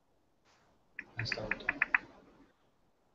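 A woman speaks faintly over an online call.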